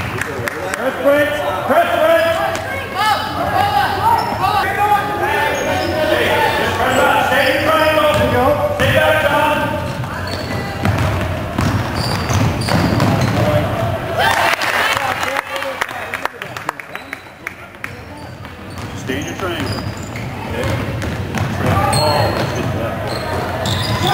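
Spectators nearby talk and cheer loudly.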